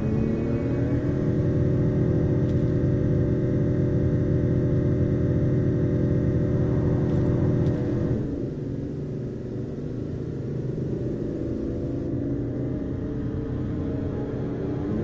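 Music plays from a car radio.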